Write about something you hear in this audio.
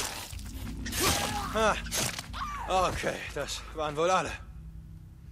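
A man grunts and shouts while fighting.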